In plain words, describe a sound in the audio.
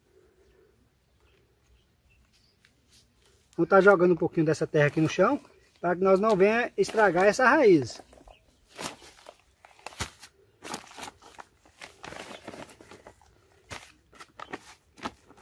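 A plastic bag crinkles and rustles as hands handle it.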